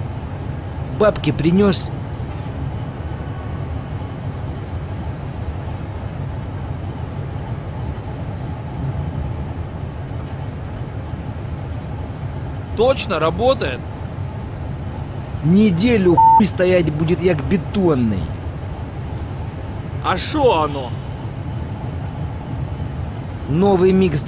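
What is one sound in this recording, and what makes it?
Men talk with each other outdoors, in short bursts.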